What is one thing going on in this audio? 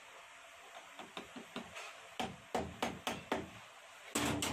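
A hammer taps sharply on metal several times.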